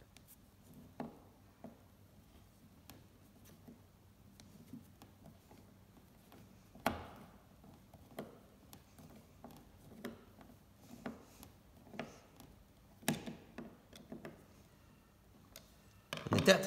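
A screwdriver creaks and clicks as it drives a screw into wood.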